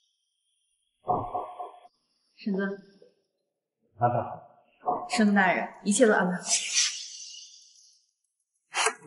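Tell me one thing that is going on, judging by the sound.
A young woman speaks calmly and respectfully.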